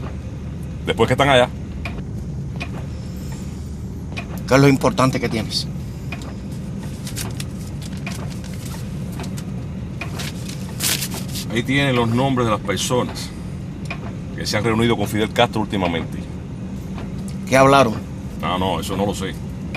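A middle-aged man speaks in short phrases nearby.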